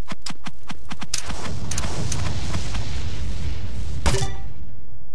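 Blocks break with quick cracking hits.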